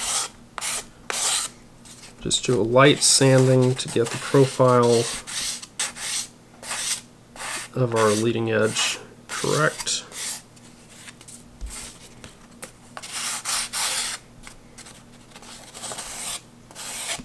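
A sanding block scrapes along the edge of paper in short strokes.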